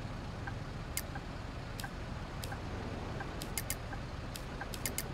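Short interface clicks sound as menu options are picked.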